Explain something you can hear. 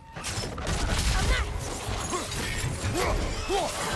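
Creatures snarl and screech in a fight.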